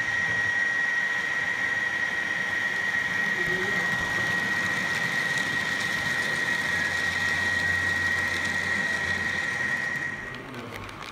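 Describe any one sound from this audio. A model train's motor hums with a steady high whine.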